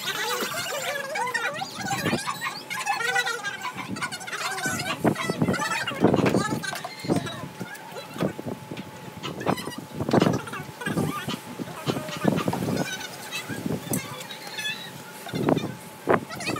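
Plastic and dishes knock and clatter on a table.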